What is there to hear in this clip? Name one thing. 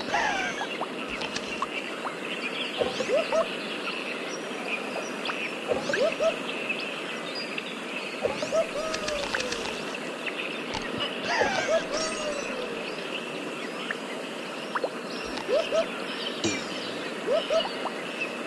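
Bright chimes ring quickly as bananas are collected.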